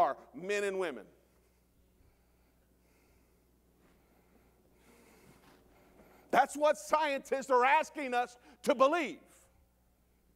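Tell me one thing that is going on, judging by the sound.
A middle-aged man preaches with animation through a microphone in an echoing hall.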